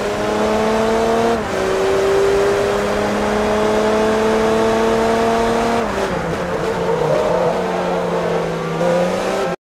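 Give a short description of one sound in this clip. A racing car engine roars loudly, rising in pitch and dropping with each gear change.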